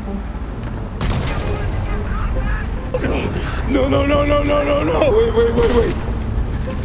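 Loud explosions boom nearby.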